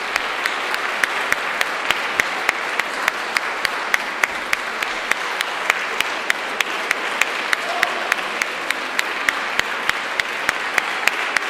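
An audience claps together in a steady rhythm in a large echoing hall.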